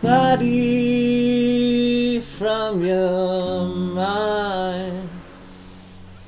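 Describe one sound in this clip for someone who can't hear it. A man sings in a long, wavering tone close by.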